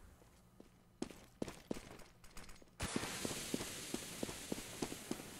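Footsteps tread quickly on hard ground.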